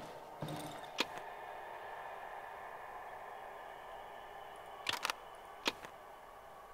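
Short sharp clicks tick now and then.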